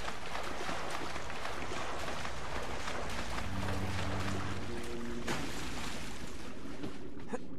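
Water sloshes and splashes.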